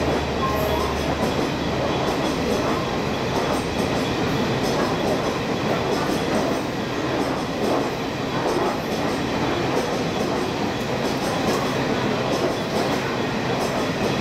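Passenger train coaches roll past under a platform roof, with wheels clattering over rail joints.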